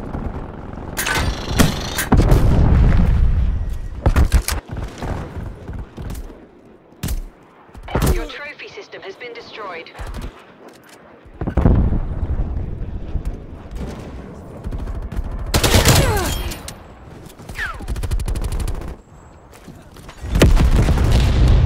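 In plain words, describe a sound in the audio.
Automatic gunfire rattles in loud bursts.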